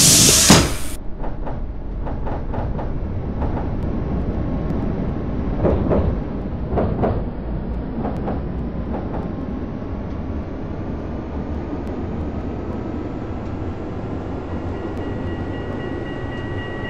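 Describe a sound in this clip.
A tram rumbles steadily along the rails.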